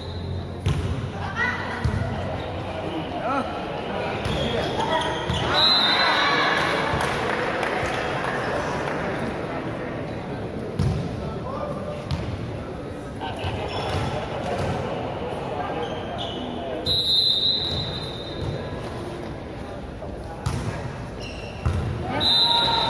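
A volleyball is struck with sharp thuds.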